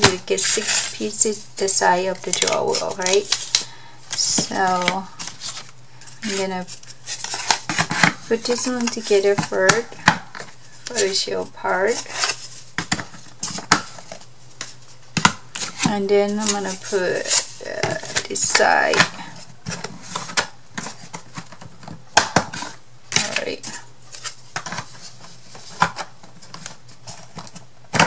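Thin wooden boards clack and tap against each other and a table.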